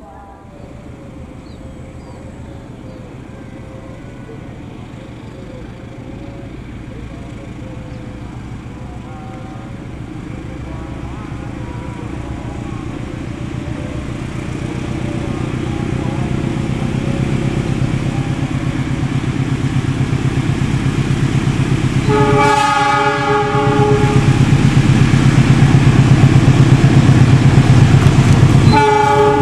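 A diesel locomotive engine rumbles, growing steadily louder as it approaches.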